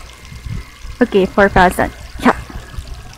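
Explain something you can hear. A young woman speaks brightly into a close microphone.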